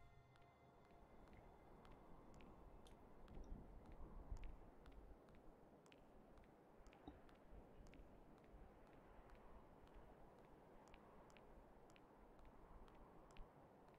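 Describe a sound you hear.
Soft light footsteps tap steadily.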